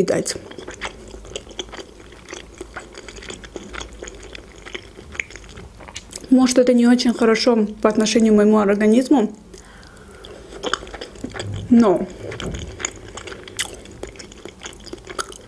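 A young woman chews food with wet, crisp mouth sounds close by.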